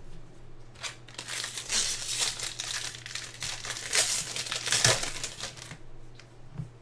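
A foil wrapper crinkles loudly as it is torn open.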